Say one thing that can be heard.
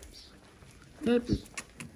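A young goat bleats nearby.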